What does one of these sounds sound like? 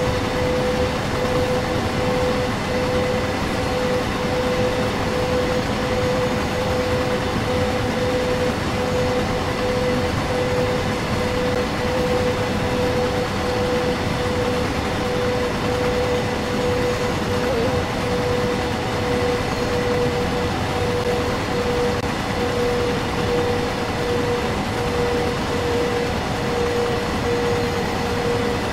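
A train's electric motor hums with a steady whine.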